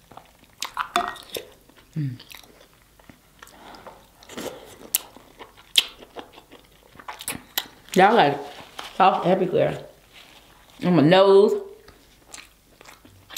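A young woman chews loudly with crunching, squelching sounds, close up.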